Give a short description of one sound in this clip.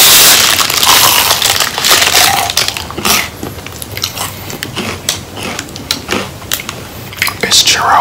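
A man chews food noisily with his mouth close to a microphone.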